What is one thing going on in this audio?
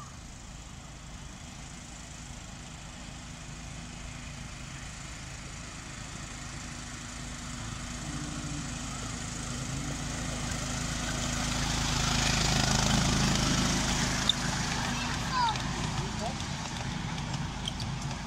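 A small engine hums as a miniature train approaches and passes close by.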